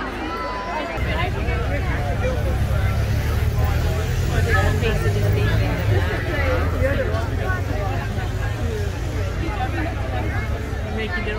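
Police motorcycles rumble past at low speed.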